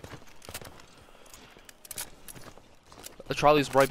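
A rifle bolt clicks and rattles as cartridges are loaded.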